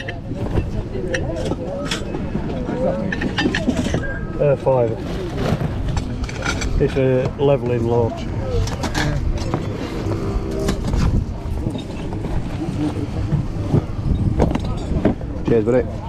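Objects clink and knock as they are handled in a box.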